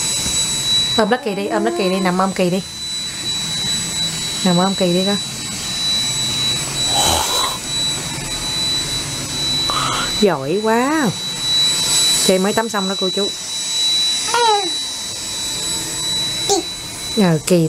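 A toddler babbles and squeals up close.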